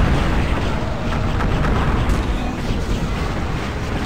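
A magic weapon fires crackling blasts.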